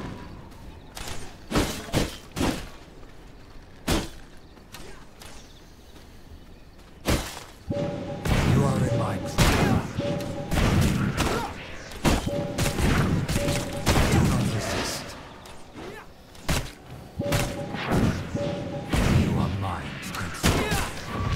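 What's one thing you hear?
Weapon blows clash and thud in a game fight.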